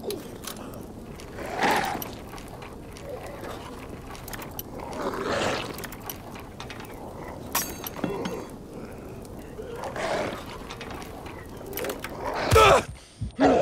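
Metal lock picks scrape and click inside a lock.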